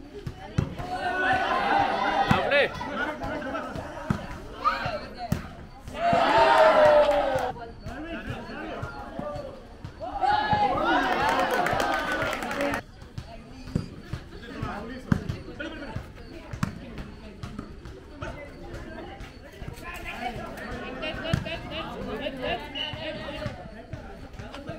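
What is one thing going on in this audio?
Young men shout and call out to each other during an outdoor volleyball game.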